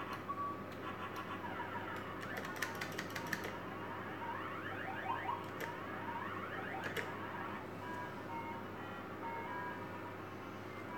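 A gaming machine plays quick electronic beeps and chimes.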